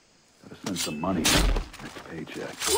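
A knife stabs into a body with a heavy thud.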